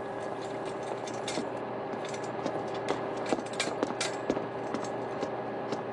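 Footsteps clatter on metal stairs.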